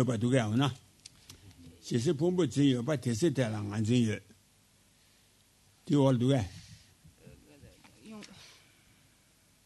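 An elderly man chants slowly into a microphone in a deep voice.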